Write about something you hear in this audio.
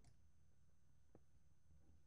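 A pickaxe chips at stone in short knocks.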